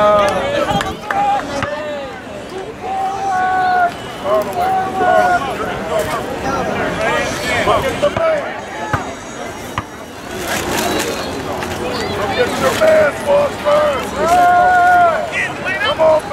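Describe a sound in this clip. Young boys shout and cheer loudly outdoors.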